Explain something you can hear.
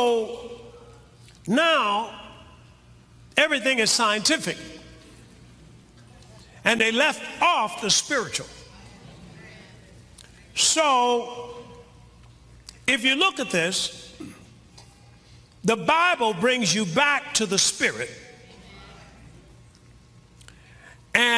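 A man preaches forcefully through a microphone, in short bursts with pauses between them.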